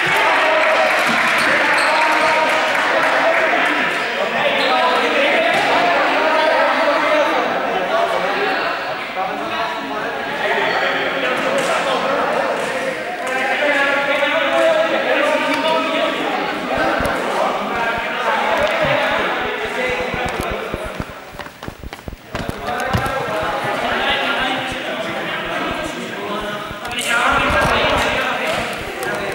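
Many young people talk and shout in a large echoing sports hall.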